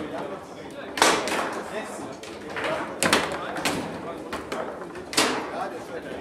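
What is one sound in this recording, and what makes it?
Foosball rods clatter and a ball knocks sharply against the table.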